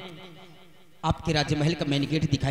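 A young woman speaks through a microphone and loudspeakers.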